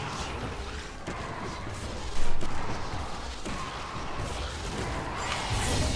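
Game fight effects clash and whoosh.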